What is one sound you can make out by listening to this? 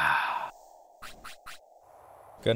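Short electronic menu blips sound.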